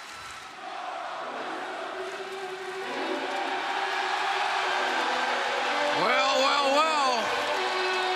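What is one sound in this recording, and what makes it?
A large crowd cheers and roars in a big echoing hall, growing louder.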